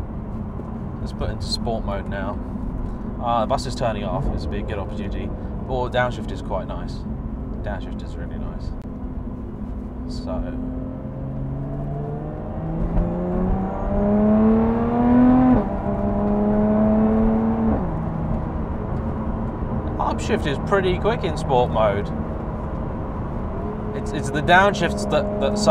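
A man talks calmly from close by inside a car.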